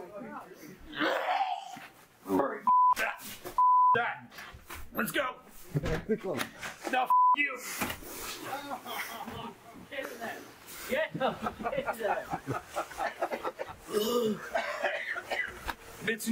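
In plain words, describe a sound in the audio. A man talks loudly and angrily close by.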